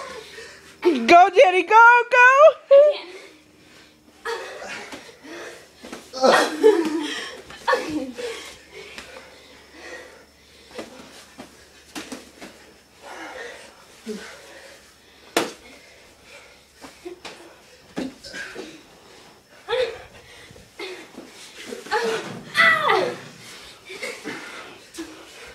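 Bare feet scuff and slap on a concrete floor.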